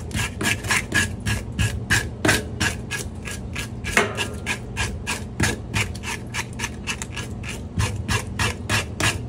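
A knife scrapes scales off a fish in quick, rasping strokes.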